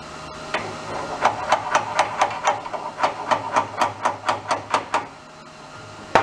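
A hand tool clicks rapidly against metal.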